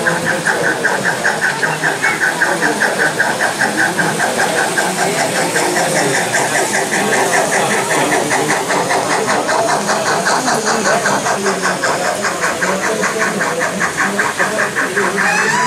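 A model steam train rolls along the track with a fast, steady clicking rattle.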